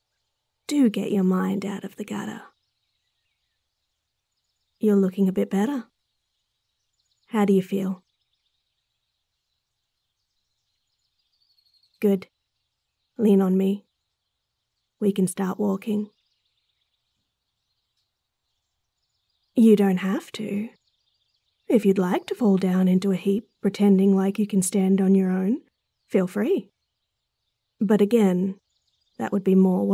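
A young woman speaks playfully and softly, close to a microphone.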